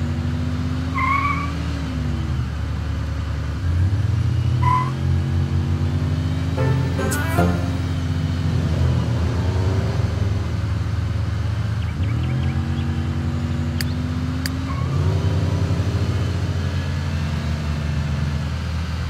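A car engine hums steadily and rises and falls in pitch.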